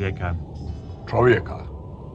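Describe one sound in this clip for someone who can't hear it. A man speaks briefly.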